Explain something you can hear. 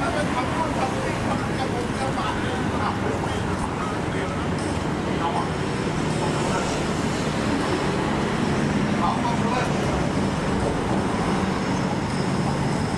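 A busy outdoor street hums with steady crowd chatter and traffic.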